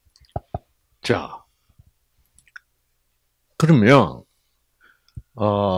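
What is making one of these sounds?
An elderly man speaks into a microphone with animation, in bursts.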